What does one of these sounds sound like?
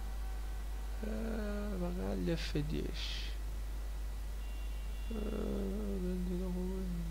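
A young man talks into a close microphone in a relaxed voice.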